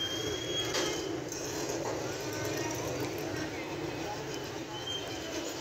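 A crowd of people chatters in a busy street outdoors.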